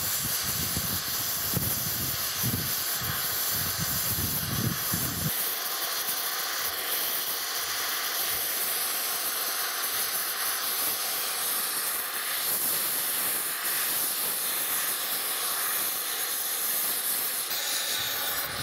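A gas torch flame hisses and roars steadily close by.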